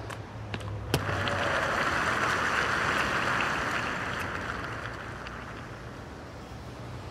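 A crowd applauds and cheers, then slowly fades.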